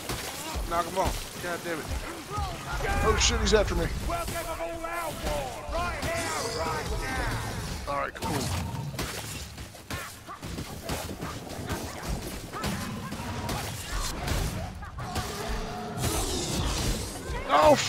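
Blades hack into a large creature with heavy, wet thuds.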